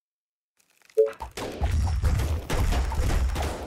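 Gunfire and explosions rumble in a battle.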